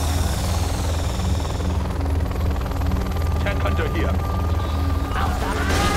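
A helicopter's rotor thumps steadily.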